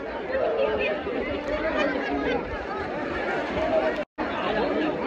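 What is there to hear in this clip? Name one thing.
A crowd of young people chatter and shout excitedly close by.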